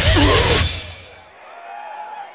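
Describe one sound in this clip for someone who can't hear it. An electric guitar plays loudly and then stops.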